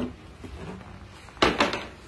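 A hand knocks and handles a framed board.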